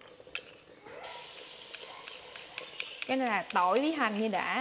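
Onions sizzle in hot oil in a pan.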